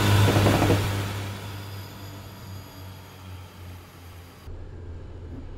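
A train rushes past close by.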